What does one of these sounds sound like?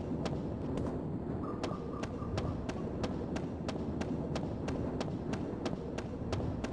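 Quick footsteps thud steadily on hard ground.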